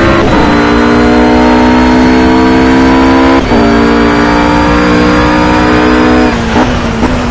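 A GT3 racing car engine howls at full throttle and shifts up a gear.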